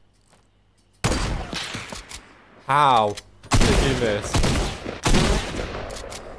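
A rifle fires loud shots that echo away.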